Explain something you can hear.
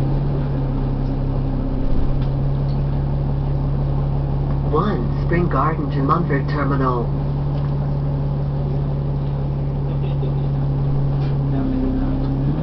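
An articulated diesel city bus idles.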